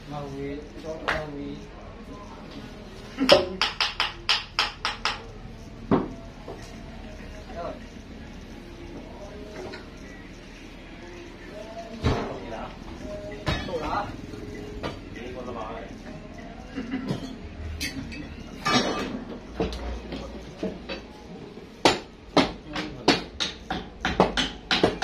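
Wooden bars knock and thud against heavy logs.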